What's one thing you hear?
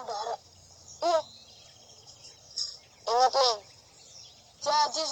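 A second young boy answers nearby.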